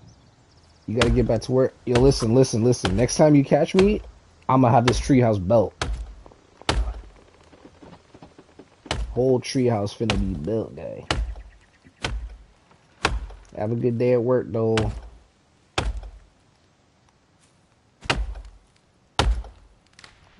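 An axe chops into a tree trunk with sharp, repeated thuds.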